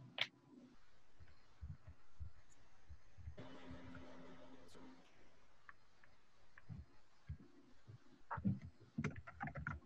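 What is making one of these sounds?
A hand brushes and rustles against a sheet of paper.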